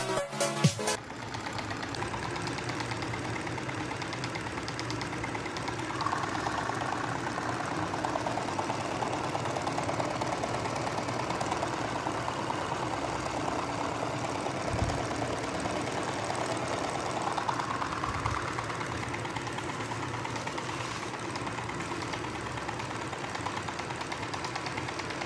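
A small electric motor whirs steadily with a fast rattle.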